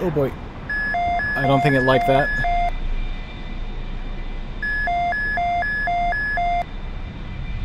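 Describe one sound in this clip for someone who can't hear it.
A cockpit warning tone beeps in a fast repeating pattern.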